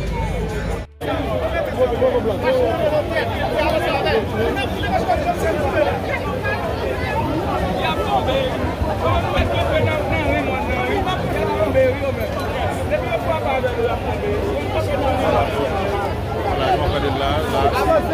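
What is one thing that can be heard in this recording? A large crowd of men and women talks and shouts outdoors.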